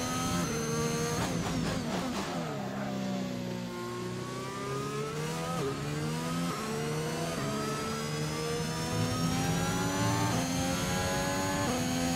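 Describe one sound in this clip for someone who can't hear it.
A racing car engine whines loudly, dropping in pitch when braking and rising again as it speeds up through the gears.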